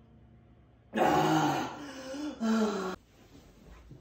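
A young man gargles water.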